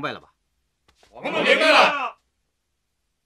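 A group of men and women shout in unison.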